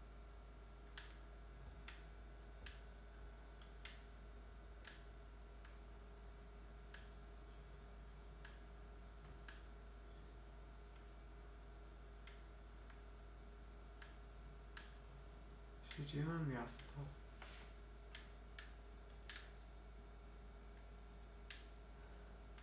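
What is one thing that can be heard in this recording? Footsteps tap steadily through a television speaker.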